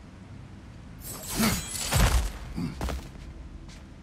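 A loud magical blast bursts and crackles.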